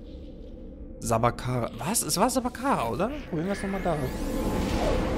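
A teleporter warbles with rising and falling electronic tones.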